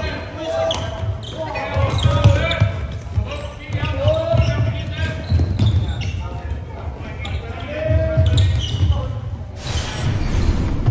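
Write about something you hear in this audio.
Sticks clack against a light plastic ball in a large echoing hall.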